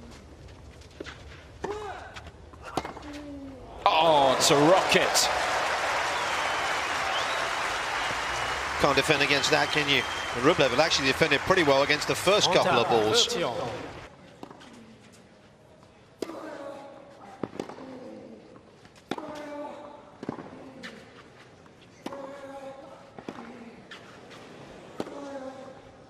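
A tennis ball is struck back and forth with sharp pops of rackets.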